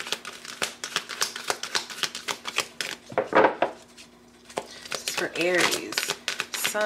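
Playing cards shuffle and flap rapidly, close up.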